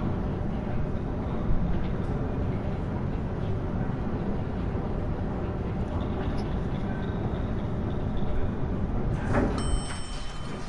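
A low, droning rumble fills the air and then fades.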